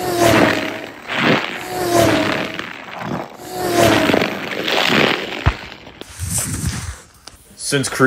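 A small toy car rolls quickly across a hard floor.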